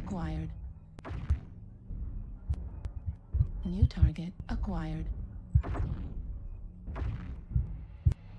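Laser weapons fire with buzzing, humming blasts.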